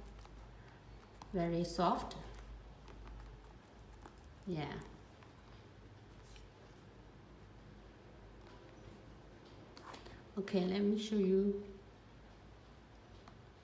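Hands handle a leather shoe with soft rustling and creaking.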